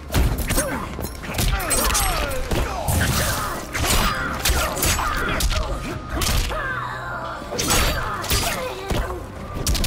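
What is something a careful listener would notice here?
A man grunts and shouts with effort.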